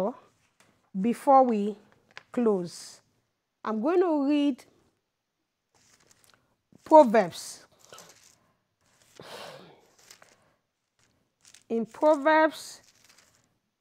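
A woman speaks calmly into a microphone in short phrases, with pauses between them.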